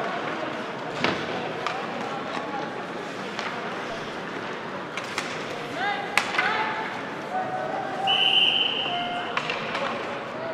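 Hockey sticks clack against a puck on the ice.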